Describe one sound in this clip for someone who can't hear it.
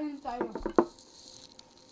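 A young woman speaks close up.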